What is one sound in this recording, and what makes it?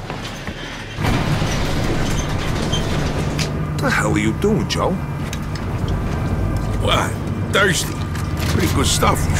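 A lift rumbles and hums steadily as it moves.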